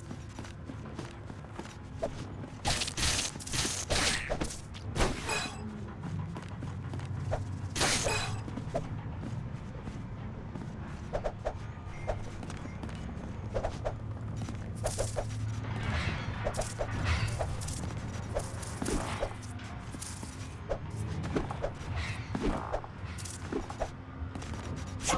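Footsteps tap lightly on wooden planks.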